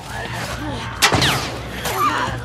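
Glass shatters.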